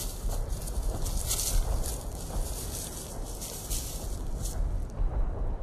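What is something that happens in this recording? Brush rustles and crackles as men push through it.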